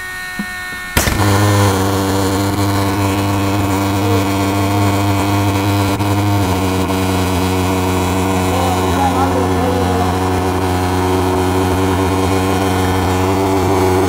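A small engine starts with a sudden bang and runs with a loud, steady drone.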